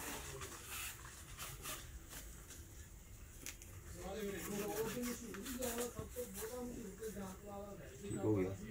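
Rubber rubs and squeaks as it is stretched and twisted by hand.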